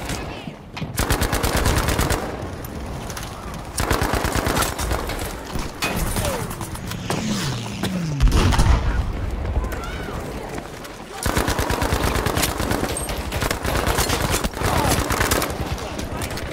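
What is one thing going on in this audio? Rapid bursts of automatic gunfire crack close by.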